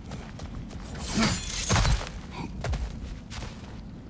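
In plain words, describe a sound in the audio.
A heavy body thuds and scrapes while climbing over a ledge.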